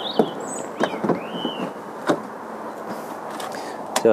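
A charging plug clicks into a car's socket.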